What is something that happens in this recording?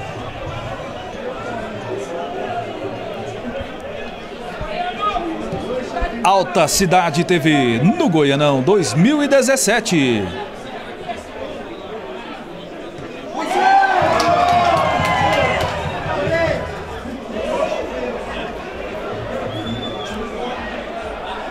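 A crowd murmurs and calls out from the stands outdoors.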